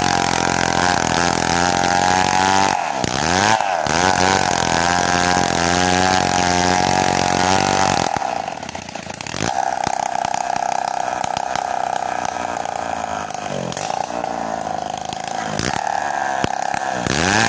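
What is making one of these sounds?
A chainsaw engine revs up and down.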